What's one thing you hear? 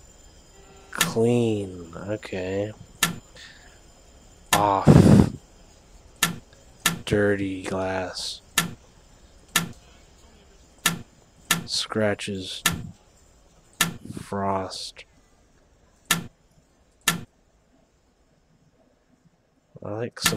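Short electronic clicks and tones sound again and again.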